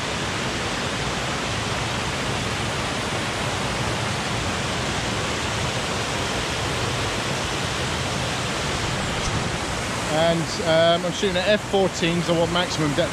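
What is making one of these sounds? A stream rushes and splashes over rocks outdoors.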